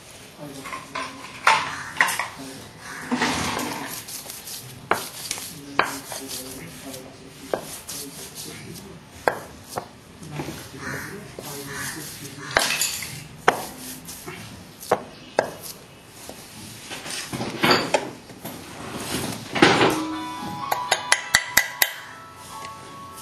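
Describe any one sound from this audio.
A lump of clay thumps and slaps against a hard slab.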